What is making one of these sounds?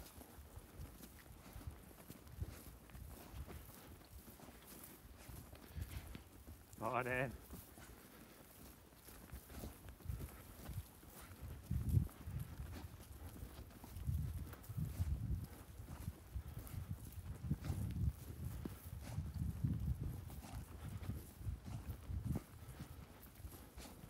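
A dog sniffs busily at the soil close by.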